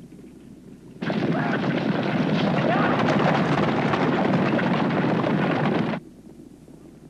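Rocks crash and rumble loudly in a landslide.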